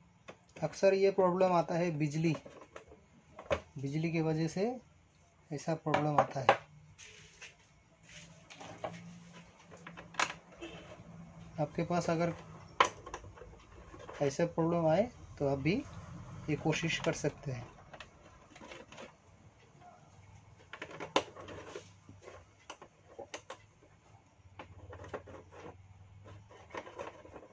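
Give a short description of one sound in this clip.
A screwdriver scrapes and clicks as it turns small screws.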